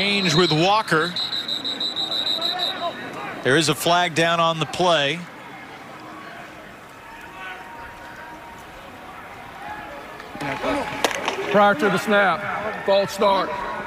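A man announces a penalty over a loudspeaker, echoing across an open stadium.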